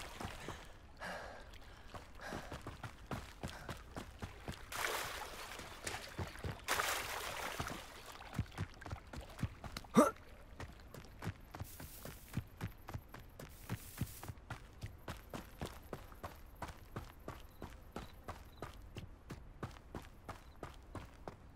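Footsteps run quickly over grass and dirt paths.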